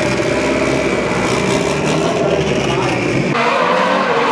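A race car engine idles with a low rumble close by.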